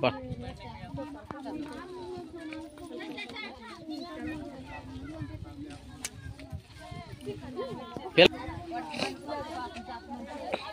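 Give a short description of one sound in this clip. Several women chatter nearby outdoors.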